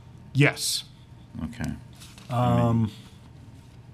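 A man speaks into a microphone.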